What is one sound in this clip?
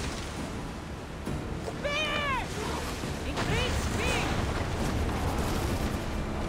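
Strong wind blows over open water.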